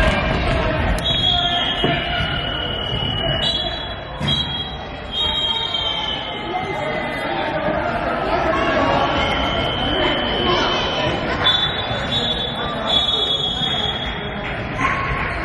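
Shoes squeak on a wooden court floor.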